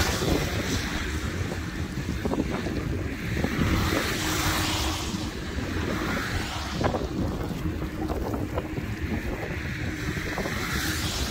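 A car rolls along a road with a steady low rumble.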